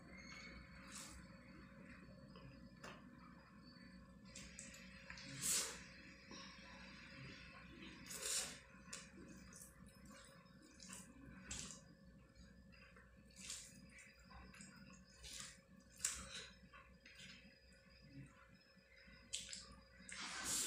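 Fingers squish and mix soft rice on a plate.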